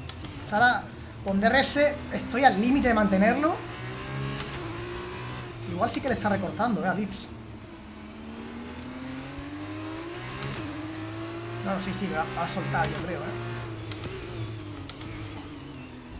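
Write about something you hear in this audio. A racing car engine whines and rises and falls in pitch as it changes gears.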